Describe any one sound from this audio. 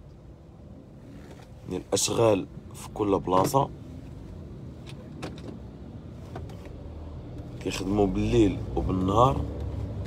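A car engine hums low and steady as the car drives.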